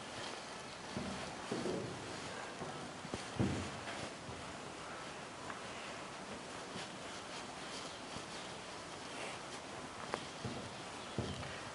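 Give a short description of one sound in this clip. A cloth eraser rubs across a whiteboard.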